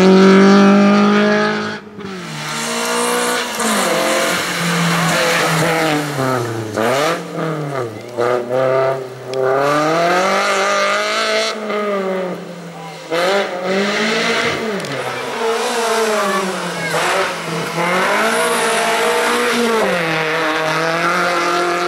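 A car engine revs hard, rising and falling in pitch as the gears change.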